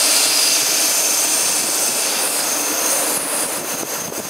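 A train rolls in along the tracks.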